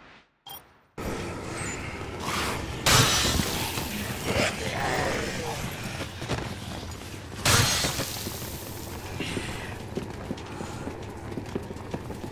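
Footsteps slap on a hard floor.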